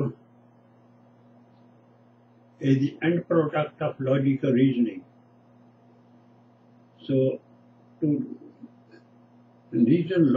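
An elderly man speaks calmly and close to a microphone, in short bursts with pauses.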